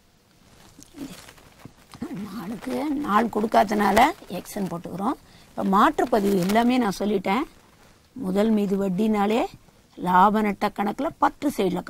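A woman speaks calmly and clearly, as if teaching, close by.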